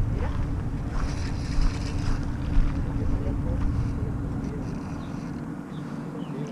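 Wind buffets outdoors, rumbling low.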